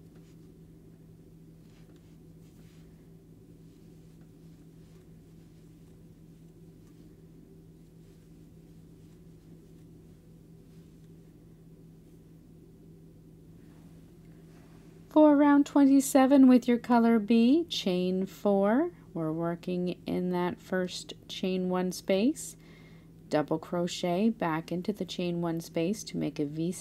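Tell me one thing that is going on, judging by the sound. A crochet hook softly pulls yarn through stitches.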